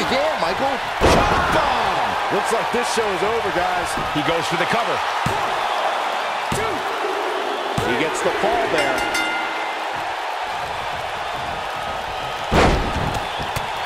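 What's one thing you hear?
A heavy body slams onto a wrestling ring mat with a loud thud.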